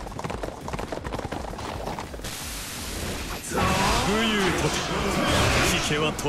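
Swords slash and clang in rapid combat.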